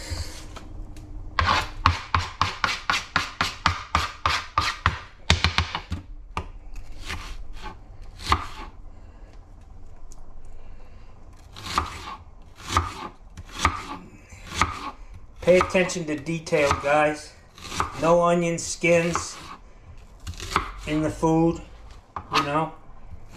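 A knife chops through an onion, knocking on a cutting board.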